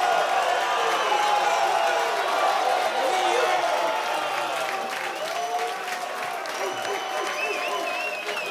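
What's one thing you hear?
A large crowd cheers and shouts loudly in an echoing hall.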